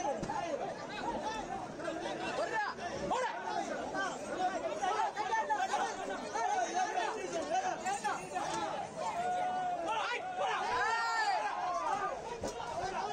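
A crowd of men talk and call out loudly nearby, outdoors.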